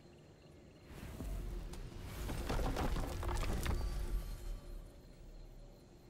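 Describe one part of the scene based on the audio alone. A large wooden door creaks open with a deep, rumbling whoosh.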